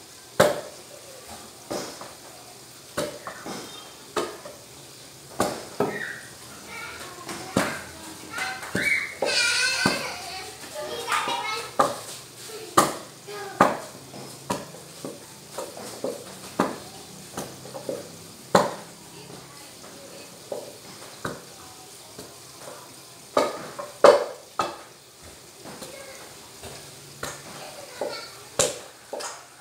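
A wooden pestle pounds mashed food in a metal pot with dull thuds.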